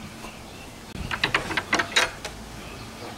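A hand knocks on a wooden fence board.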